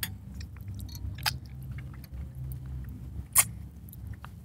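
Dishes clink softly on a table.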